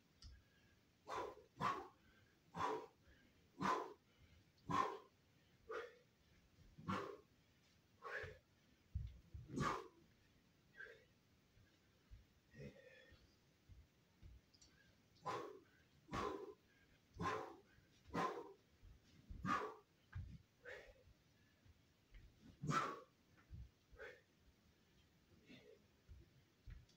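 A man breathes out sharply and forcefully in short bursts.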